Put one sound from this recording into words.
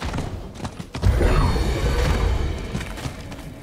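Magic blasts whoosh and crackle in a loud burst.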